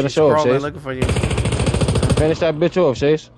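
A rapid burst of gunfire rattles.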